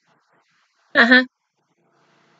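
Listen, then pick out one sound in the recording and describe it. A young woman laughs out loud close by.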